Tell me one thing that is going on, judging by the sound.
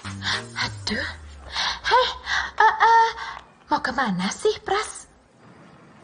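Two young women talk with animation.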